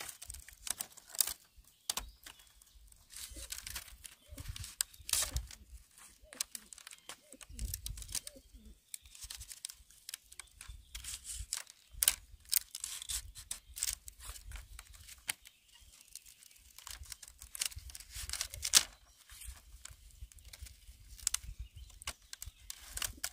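Split bamboo strips clack and rattle as they are woven into a mat.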